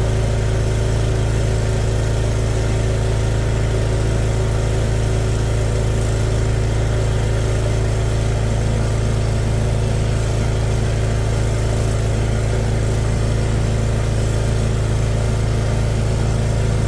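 Water churns and gurgles steadily as a high-pressure hose jets into a flooded drain.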